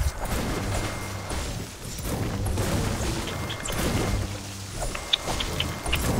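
A pickaxe strikes a tree with sharp thuds.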